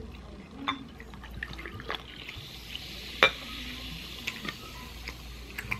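Soda pours from a bottle into a glass over ice.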